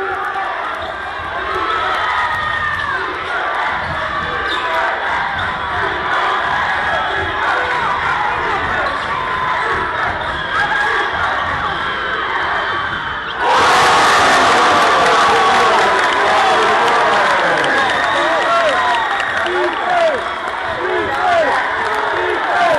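A crowd chatters and calls out in a large echoing gym.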